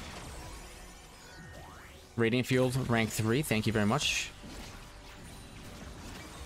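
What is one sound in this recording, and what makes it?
Fantasy battle sound effects clash and whoosh.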